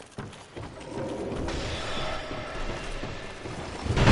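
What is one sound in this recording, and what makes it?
Armoured footsteps clank on stone as a figure runs.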